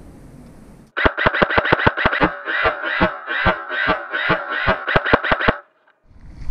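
An airsoft gun fires a burst of rapid shots.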